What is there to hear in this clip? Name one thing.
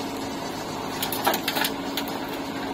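Soil and clods pour from a digger bucket and thud into a trailer.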